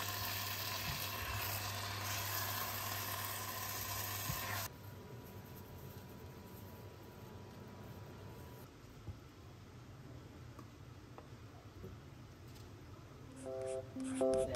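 A spatula scrapes and clinks against a pan.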